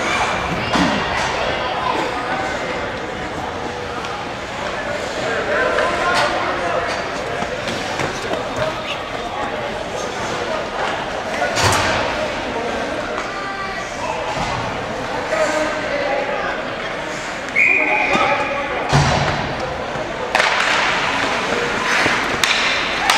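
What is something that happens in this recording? Skates scrape across ice in a large echoing arena.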